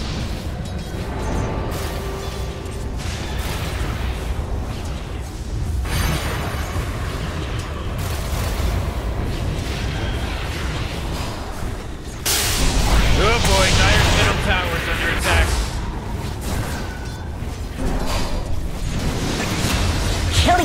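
Fighting game sounds of spells, blasts and weapon hits ring out continuously.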